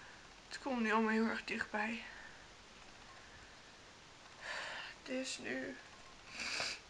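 A young woman speaks in short, halting phrases close to the microphone.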